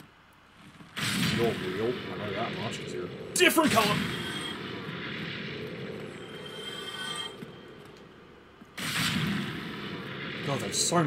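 A monster growls and shrieks loudly.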